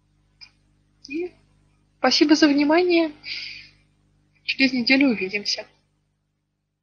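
A young woman speaks briefly and calmly through an online call.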